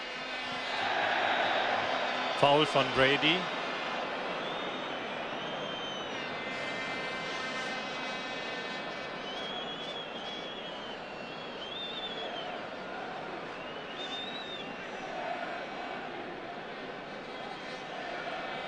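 A large crowd roars and murmurs steadily in an open stadium.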